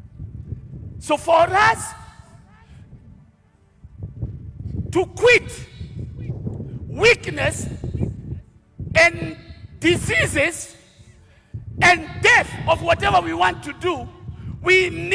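A man preaches with animation through a loudspeaker.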